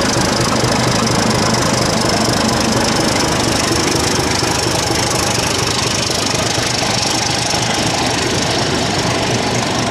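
A diesel locomotive rumbles loudly close by as it pulls away.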